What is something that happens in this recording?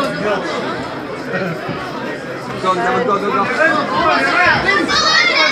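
Young girls talk and call out nearby.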